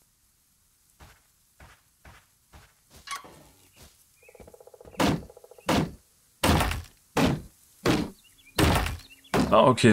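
Loud thudding blows land one after another.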